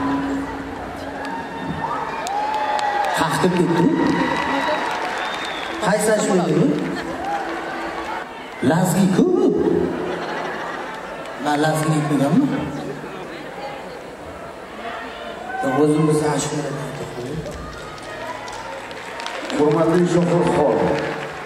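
A young man sings into a microphone over loudspeakers in a large echoing hall.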